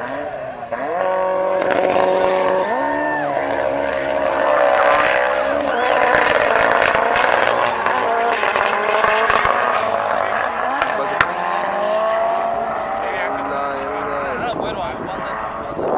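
Car engines roar as cars accelerate hard.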